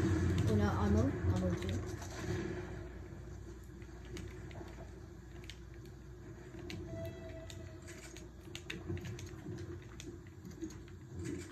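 Video game sounds play from a television.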